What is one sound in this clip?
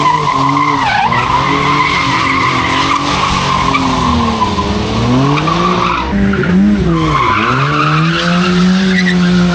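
A car engine revs hard and roars up and down.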